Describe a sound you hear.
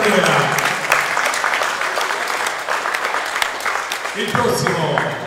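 A crowd claps and cheers in a large echoing hall.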